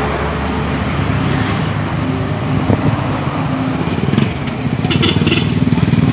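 A motorbike engine hums close by as it slowly passes.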